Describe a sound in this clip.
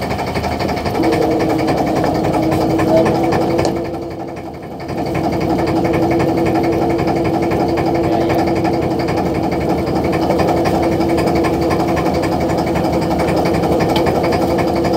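A line-hauling winch whirs with a steady whine.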